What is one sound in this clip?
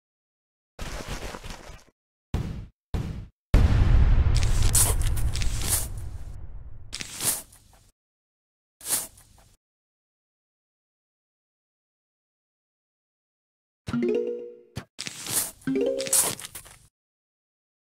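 Short video game sound effects pop and chime as plants are placed.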